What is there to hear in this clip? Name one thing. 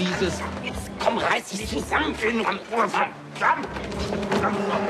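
Two men grunt and strain as they scuffle.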